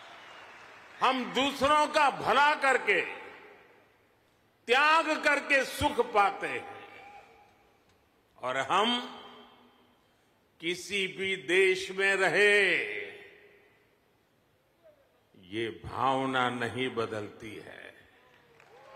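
An elderly man speaks with animation into a microphone, heard over loudspeakers in a large echoing hall.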